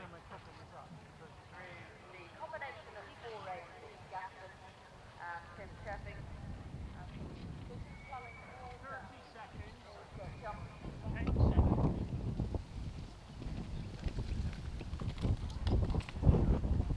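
A horse walks slowly on soft grass.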